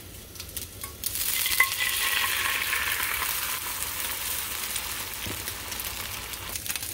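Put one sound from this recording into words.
Batter sizzles loudly as it is poured into a hot frying pan.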